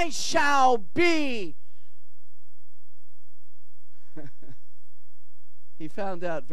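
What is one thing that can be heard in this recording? An elderly man sings with emotion into a microphone, with pauses between phrases.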